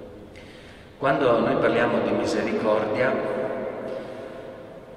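A man reads out calmly through a microphone, echoing in a large reverberant hall.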